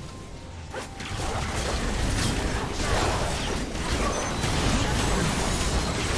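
Game spell effects and hits crackle and burst in a busy fight.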